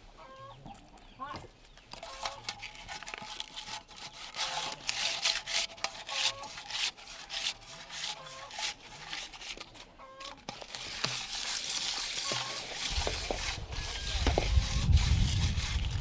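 Small stones clink and rattle into a metal pan.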